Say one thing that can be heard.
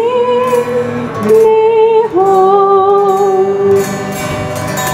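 A woman sings through a microphone outdoors.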